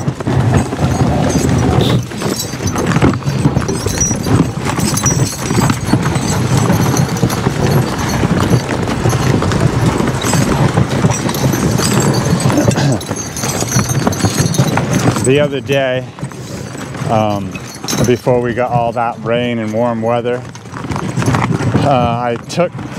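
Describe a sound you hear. A horse-drawn sleigh glides over crunching snow.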